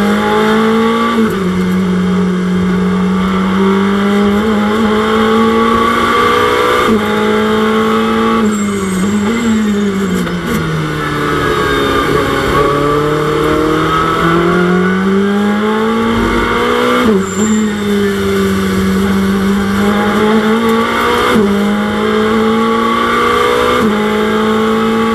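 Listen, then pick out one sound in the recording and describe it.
A race car engine roars loudly, its pitch rising and falling with gear shifts.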